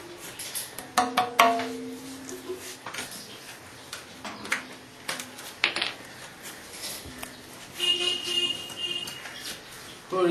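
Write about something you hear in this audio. A drum head rings briefly with a pitched tone after a tap.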